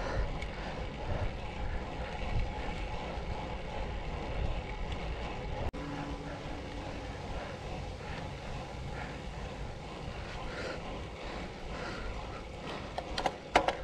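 Bicycle tyres hum on smooth asphalt.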